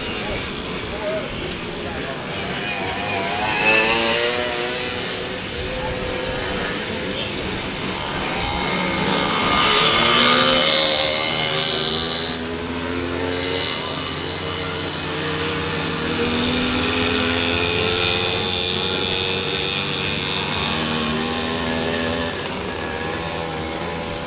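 Small motorcycle engines buzz and rev, rising and falling in pitch.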